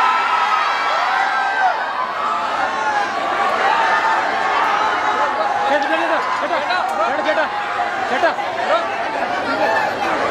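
A large crowd screams and cheers in an echoing hall.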